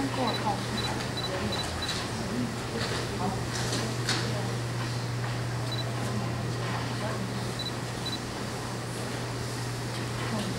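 An elderly woman speaks into a microphone over loudspeakers.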